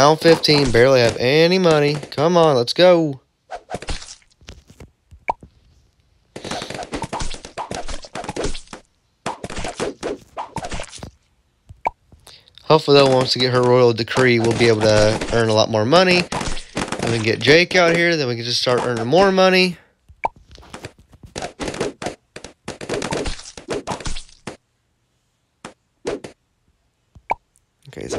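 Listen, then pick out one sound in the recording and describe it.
Small pops and zaps from a video game go off in quick bursts.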